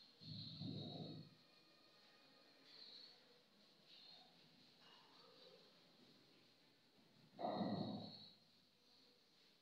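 A cloth rubs softly across a whiteboard.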